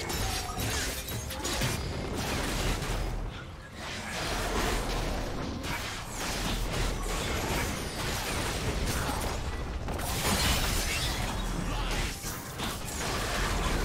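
Fantasy spell effects whoosh and clash in a fast battle.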